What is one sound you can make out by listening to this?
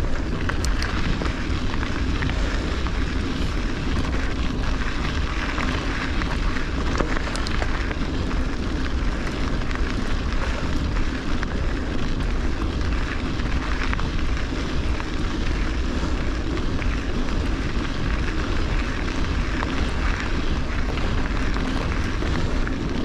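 Bicycle tyres crunch steadily over a gravel track.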